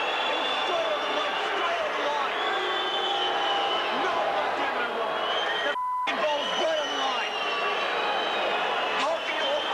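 A large crowd cheers loudly in a big stadium.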